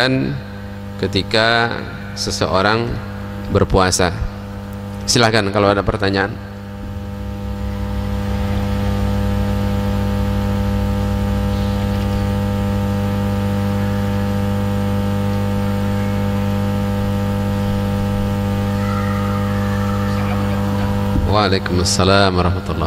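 A man chants in a melodic voice through a microphone, in an echoing room.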